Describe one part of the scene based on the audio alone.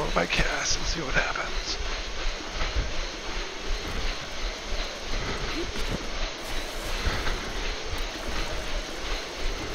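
Water splashes as a swimmer paddles.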